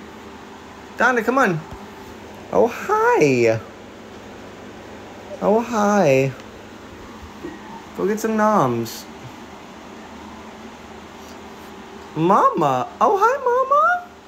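A cat meows loudly several times.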